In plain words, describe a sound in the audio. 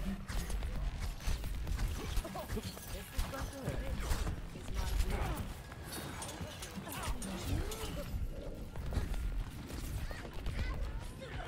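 A game weapon fires in rapid bursts.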